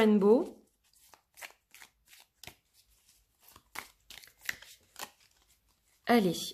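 Cards softly shuffle and tap against each other.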